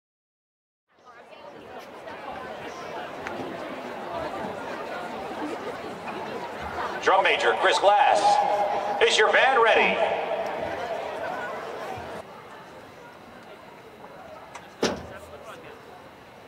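A large crowd cheers and claps outdoors.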